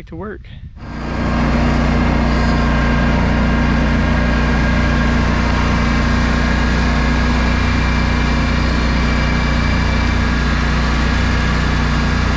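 A mower engine roars steadily while cutting tall weeds.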